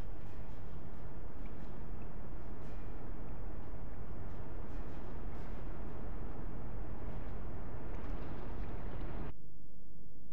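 A loud, steady rumbling hum fills the air.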